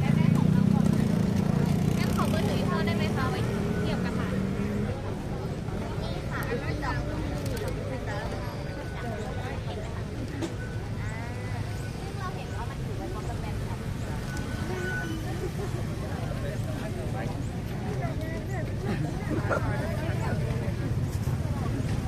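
Young women chat and laugh together close by.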